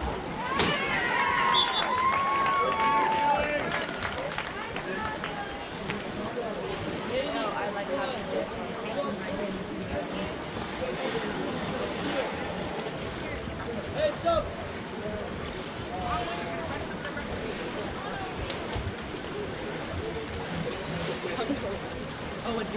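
Spectators shout and cheer outdoors.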